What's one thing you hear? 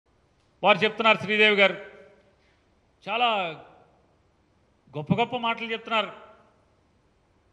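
A middle-aged man speaks forcefully into a microphone.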